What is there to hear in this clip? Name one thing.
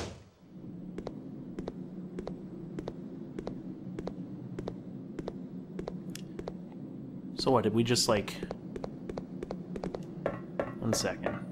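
Footsteps ring out steadily on a metal floor.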